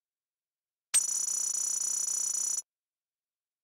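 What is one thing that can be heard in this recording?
A game score counter ticks rapidly as points add up.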